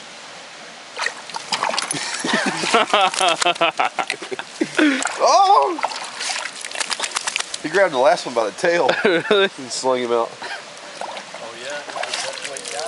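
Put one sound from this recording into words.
A dog laps water noisily from a metal bucket.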